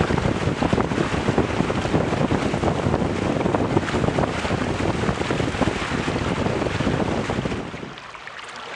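Strong wind buffets the microphone with a heavy roar.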